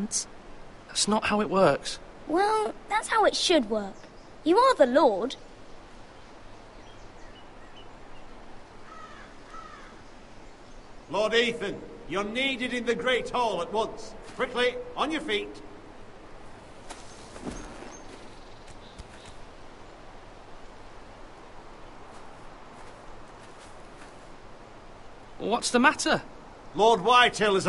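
A young man speaks calmly through game audio.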